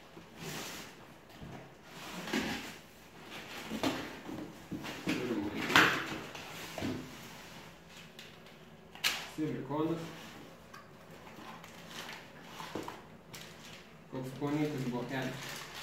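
Cardboard flaps rustle and scrape as a box is opened and unpacked.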